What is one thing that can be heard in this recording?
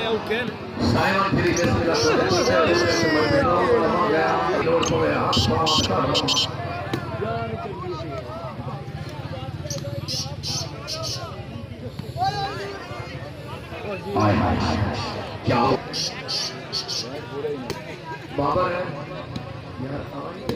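A crowd of men cheers and shouts outdoors.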